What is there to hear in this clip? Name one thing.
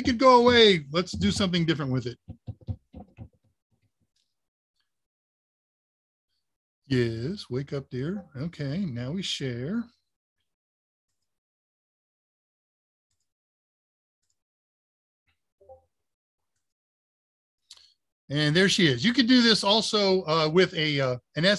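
An older man talks calmly over an online call.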